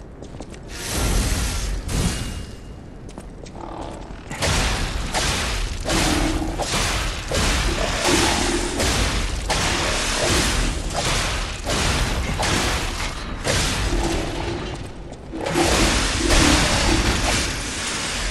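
Flames roar and crackle in bursts.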